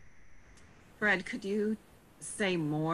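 A middle-aged woman speaks over an online call.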